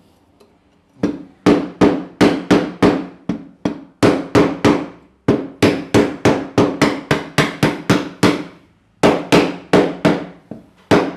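A hammer taps on wood in quick, even blows, each ringing briefly.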